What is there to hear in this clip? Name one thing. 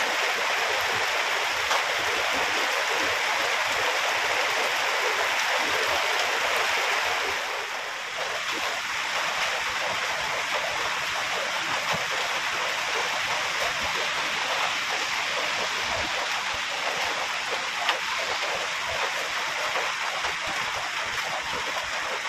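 A spade digs into wet mud.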